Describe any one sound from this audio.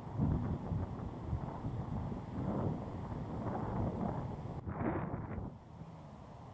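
Wind gusts loudly against the microphone outdoors.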